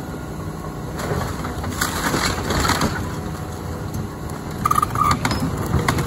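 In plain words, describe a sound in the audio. Wood and debris crack and crash as an excavator bucket tears into a wrecked house.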